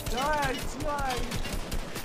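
A rifle fires in quick shots.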